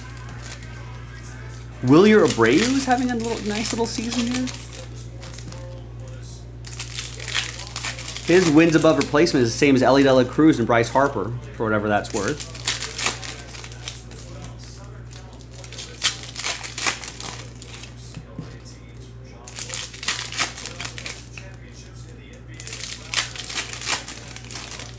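Foil card wrappers crinkle and tear as packs are opened.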